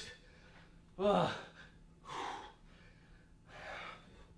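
A young man exhales sharply with effort.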